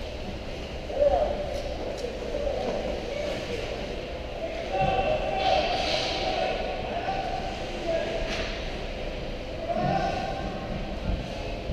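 Young players shout across the rink.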